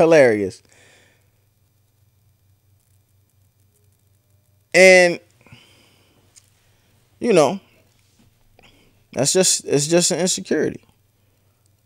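A man speaks into a close microphone in short, animated bursts.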